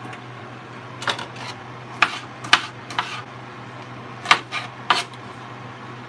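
A knife chops an onion on a wooden cutting board with sharp knocks.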